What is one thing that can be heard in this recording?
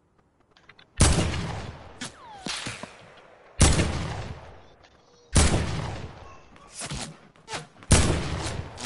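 A rifle fires loud single shots that echo, several times.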